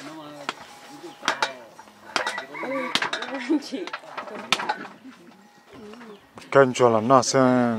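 A metal bowl clinks and scrapes.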